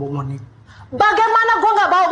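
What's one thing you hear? An older woman speaks sharply.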